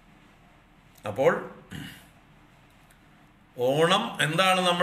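An elderly man speaks slowly and calmly, close to a microphone.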